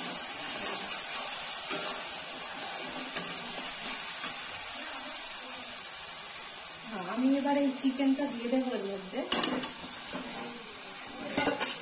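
Food sizzles in a steel wok.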